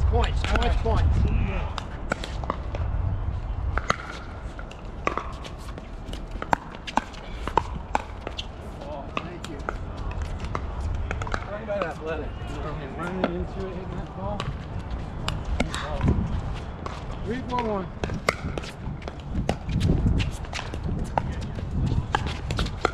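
Paddles smack a plastic ball back and forth in sharp pops.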